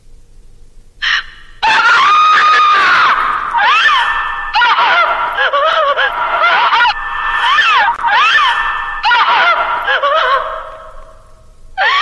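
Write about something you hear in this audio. A young woman sobs and wails loudly close by.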